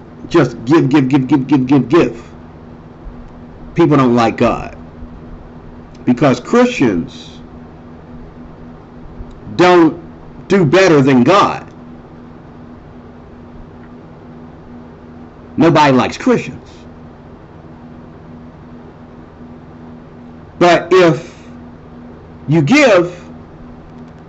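A middle-aged man speaks calmly and earnestly into a nearby microphone, in short bursts with pauses.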